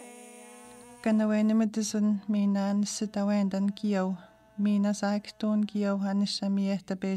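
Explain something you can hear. An older woman speaks calmly and earnestly, close by.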